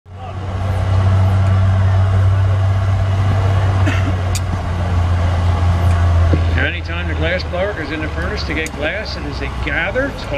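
A gas burner roars steadily.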